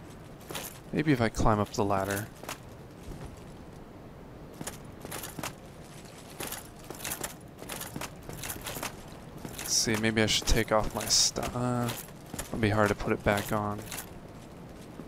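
Heavy armoured footsteps clank on stone.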